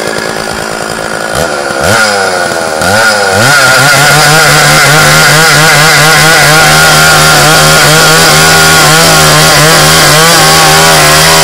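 A chainsaw engine revs up and then roars steadily while cutting through a log.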